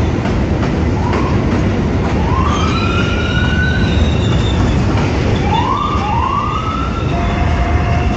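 Train wheels squeal sharply on the rails.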